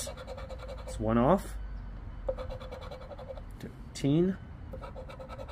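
A coin scratches rapidly across a scratch card.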